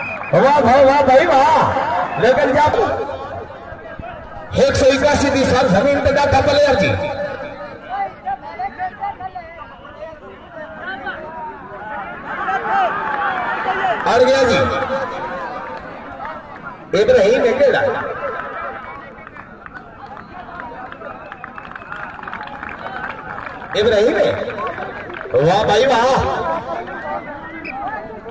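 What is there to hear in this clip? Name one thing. A large outdoor crowd cheers and shouts in loud bursts.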